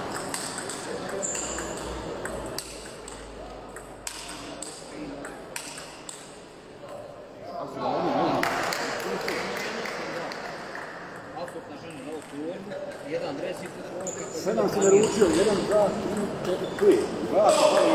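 A table tennis ball clicks back and forth off paddles and a table.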